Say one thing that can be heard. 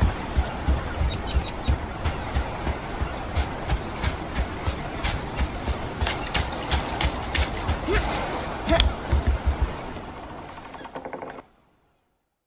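Gentle waves wash steadily nearby.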